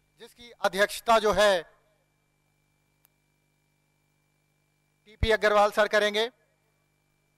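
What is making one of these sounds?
A man calls out loudly over a loudspeaker.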